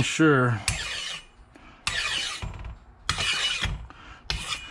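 A metal file rasps across metal in long strokes.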